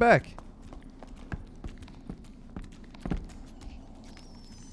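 Footsteps thud on a stone floor.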